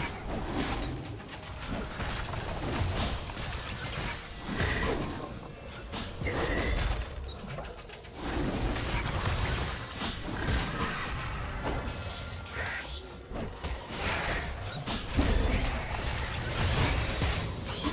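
Magic blasts and weapon hits crackle and burst in a video game fight.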